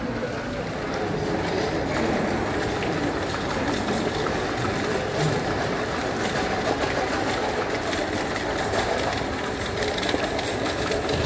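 A shopping cart rattles across a tiled floor.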